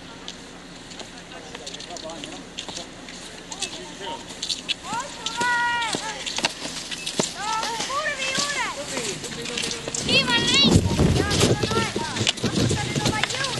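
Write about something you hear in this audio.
Skis scrape and swish over packed snow.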